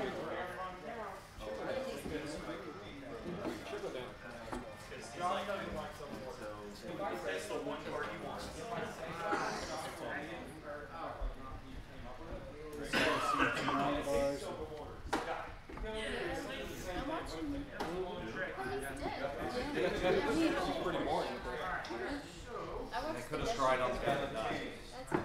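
Several men and women talk and chat in a group, in a room with some echo.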